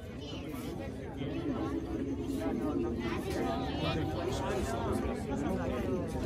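A crowd of adults chatters outdoors.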